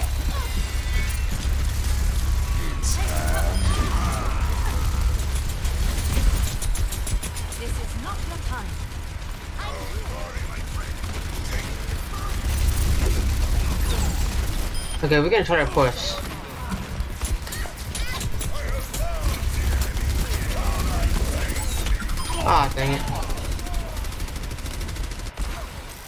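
Video game gunfire rattles.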